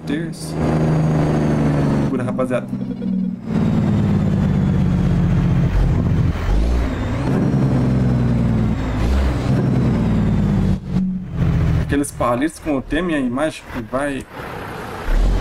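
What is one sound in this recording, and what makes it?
A truck engine drones steadily.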